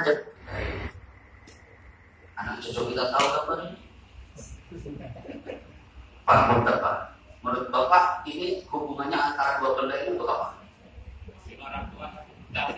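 A man speaks to a group through a microphone, heard in an echoing room.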